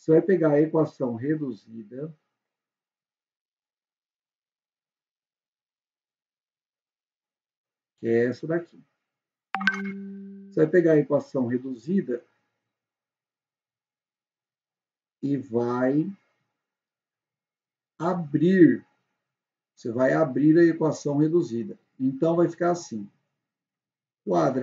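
A young man explains calmly into a close microphone, with pauses.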